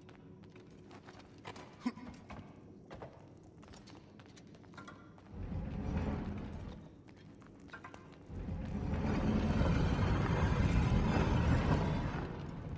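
Fire crackles softly in braziers.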